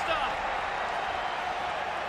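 A stadium crowd cheers and roars.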